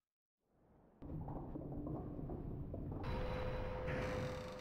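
Rumbling video game music and effects play loudly.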